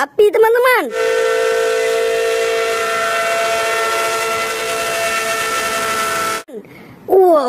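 A steam locomotive whistle blows long and steady.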